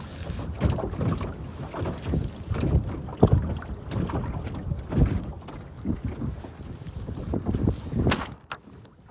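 Waves splash and slap against a small boat.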